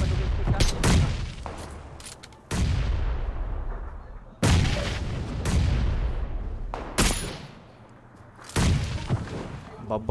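Gunshots crack loudly and echo.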